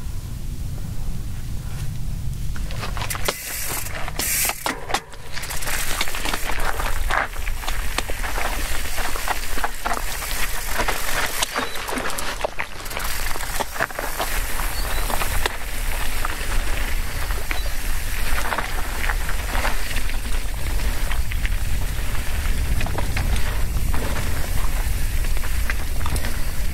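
Bicycle tyres crunch and rattle over a rocky dirt trail.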